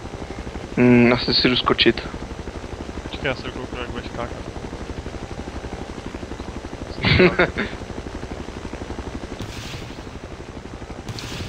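A helicopter's rotor thumps steadily as it flies low.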